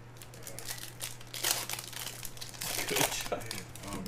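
A foil card wrapper crinkles and tears.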